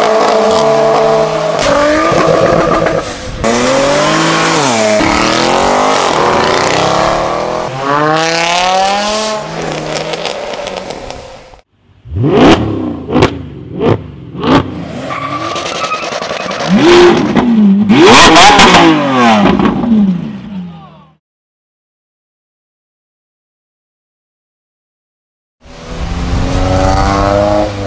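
Car engines rev loudly and roar past on a wet road.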